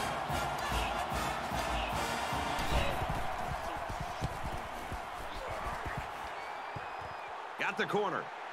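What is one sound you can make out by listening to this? A large crowd roars in a stadium.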